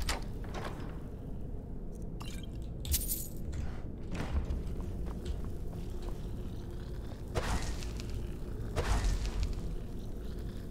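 A low magical hum drones steadily.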